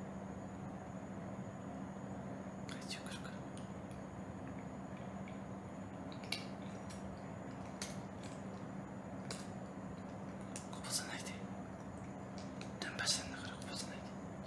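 A cat eats kibble from a hand with soft crunching and licking.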